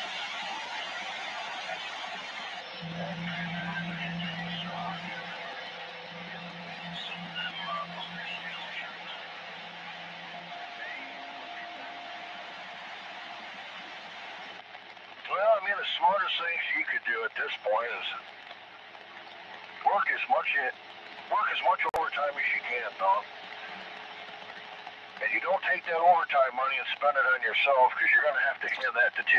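Static hisses steadily from a radio receiver.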